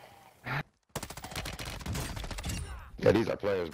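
A rifle fires rapid bursts.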